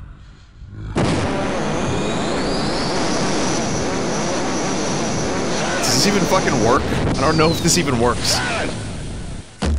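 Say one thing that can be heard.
An electric beam crackles and buzzes loudly.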